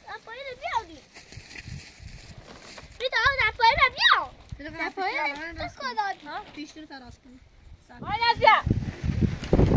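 A young girl talks in a high voice close by.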